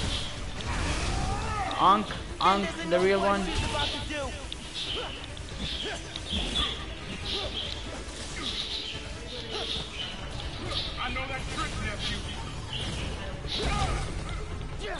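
Energy blasts whoosh and crackle in bursts.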